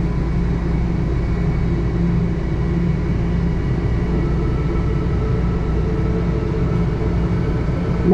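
A train starts to pull away and rolls slowly along.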